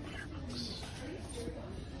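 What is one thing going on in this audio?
A hand slides books on a shelf.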